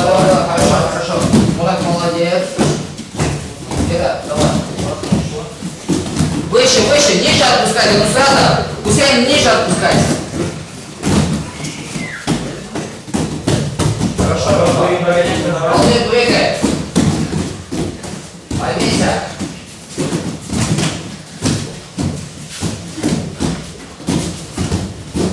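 Children thump and land on gym mats.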